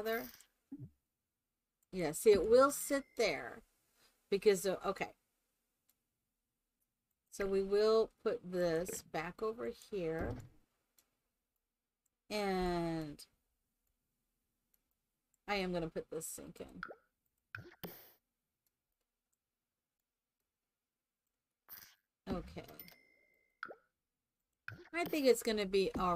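A young woman talks with animation, close to a microphone, in short bursts with pauses.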